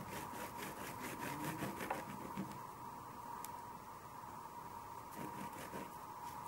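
A hand rubs and smudges pastel across paper in quick strokes.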